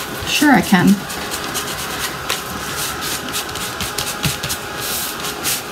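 A cloth rubs and scrubs against paper with soft, repeated swishes.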